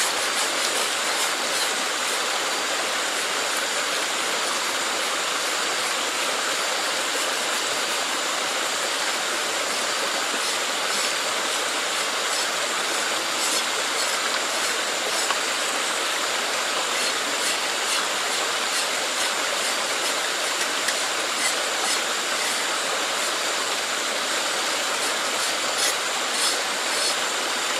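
Water trickles and gurgles steadily in a shallow stream.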